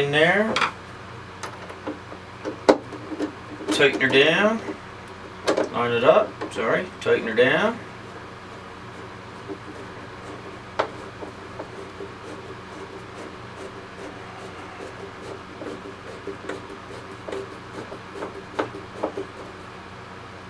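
A screwdriver turns a small screw with faint clicks.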